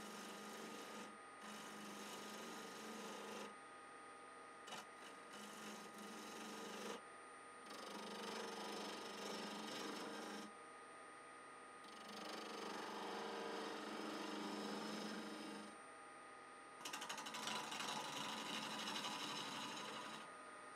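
A gouge scrapes and shaves against spinning wood in bursts.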